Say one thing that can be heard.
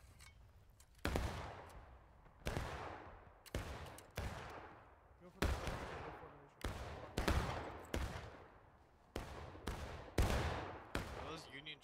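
Gunshots and blasts boom and echo across open ground.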